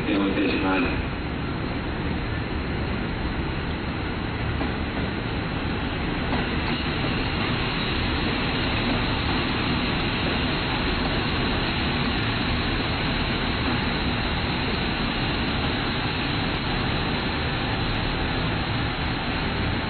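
A train rolls along the tracks with a steady rumble.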